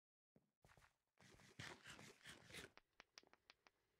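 Crunchy chewing sounds of someone eating come in quick bursts.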